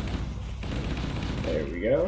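An assault rifle fires a rapid burst.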